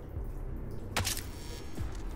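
A silenced pistol fires a single shot.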